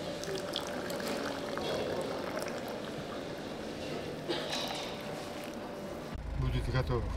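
Tea pours and splashes into a bowl.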